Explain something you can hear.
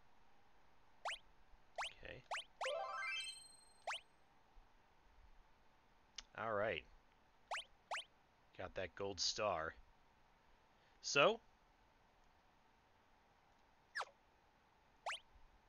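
Short electronic menu blips sound as selections are confirmed.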